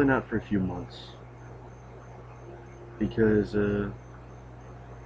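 A young man speaks briefly and casually, close to the microphone.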